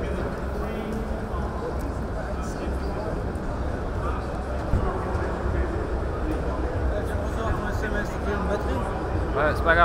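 A crowd of adults murmurs and chatters all around in a large hall.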